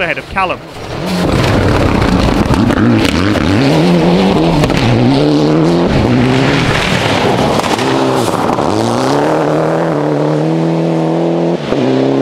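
Gravel crunches and sprays under a rally car's tyres.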